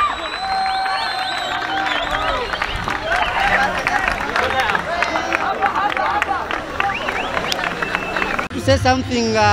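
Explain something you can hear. Players shout and cheer excitedly outdoors.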